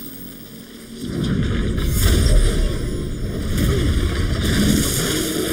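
Blades slash and strike in a close fight.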